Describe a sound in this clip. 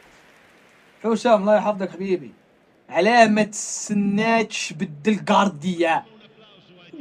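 A young man talks animatedly into a nearby microphone.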